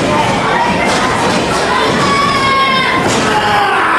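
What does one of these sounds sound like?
A man shouts from close by in the crowd.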